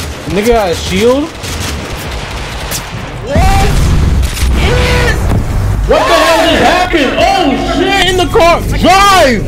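A young man talks excitedly and shouts into a close microphone.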